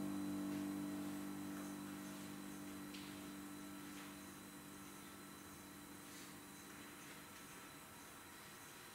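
Low electronic drone tones play through loudspeakers in a large room and slowly fade.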